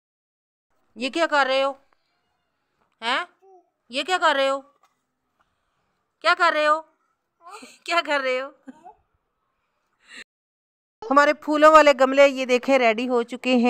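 A small child talks in short bursts close by.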